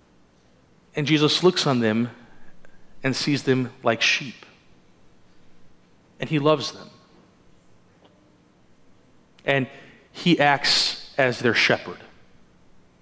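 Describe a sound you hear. A man speaks calmly in pauses, in a large echoing room.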